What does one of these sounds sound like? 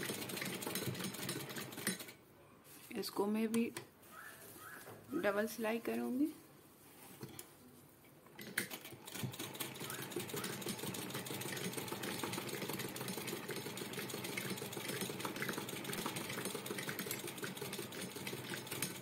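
A sewing machine runs with a steady rapid whirring clatter.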